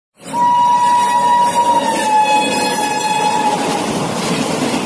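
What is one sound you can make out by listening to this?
A train horn blares loudly as a train approaches.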